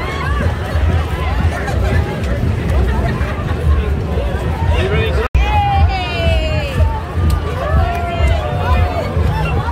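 A large outdoor crowd chatters and calls out all around.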